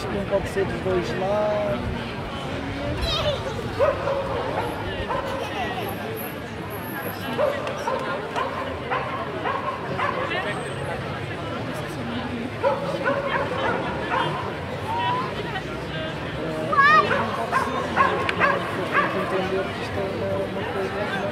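A large crowd of men and women chants and talks outdoors.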